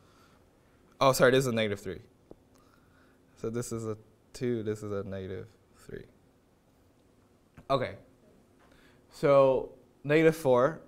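A young man speaks calmly into a clip-on microphone.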